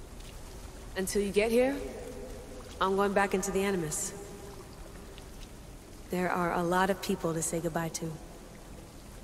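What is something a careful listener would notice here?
A young woman answers calmly, close by.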